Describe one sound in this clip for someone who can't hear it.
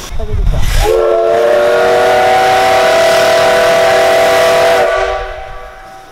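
A steam locomotive's whistle blows loud and steady.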